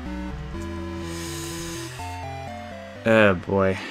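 A short electronic game melody plays in stepped tones.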